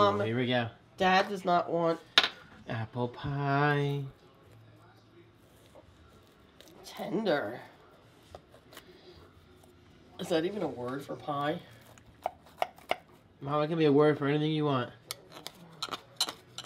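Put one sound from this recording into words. A knife scrapes and cuts through a pie crust.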